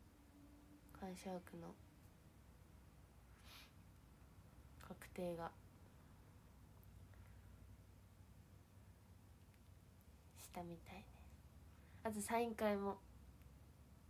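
A young woman speaks softly in short bursts, close to a microphone.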